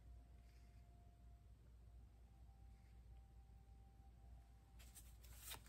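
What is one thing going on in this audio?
A card slides softly across a table.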